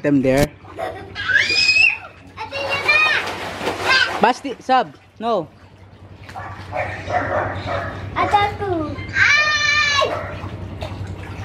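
Young children squeal and shout playfully.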